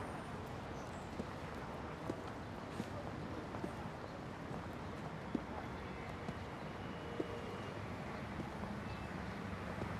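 Footsteps tap slowly on pavement.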